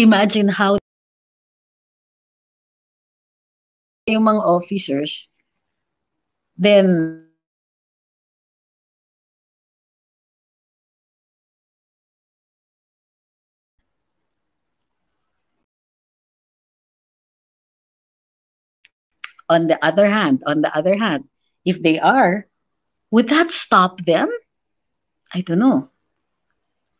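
A woman speaks into a microphone with animation, in short bursts.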